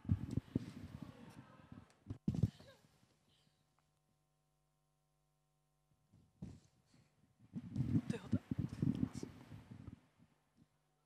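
Feet thump and shuffle on a wooden stage floor.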